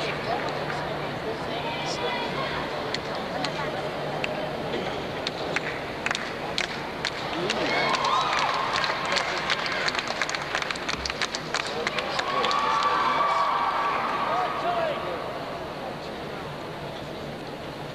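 Wooden bars rattle and clack as a gymnast swings on them.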